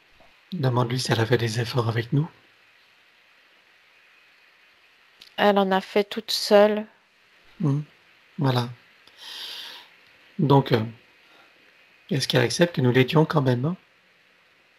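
An older man speaks calmly through a headset microphone on an online call.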